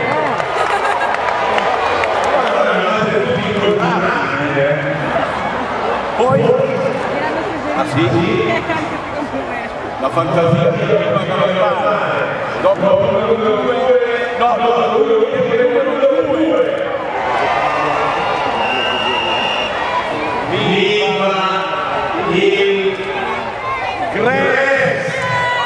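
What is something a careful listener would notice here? A large crowd cheers and chatters in an open stadium.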